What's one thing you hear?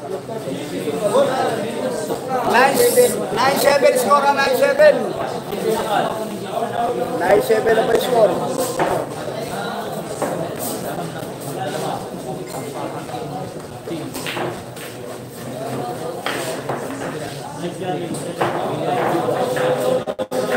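A crowd of young men chatters and calls out nearby.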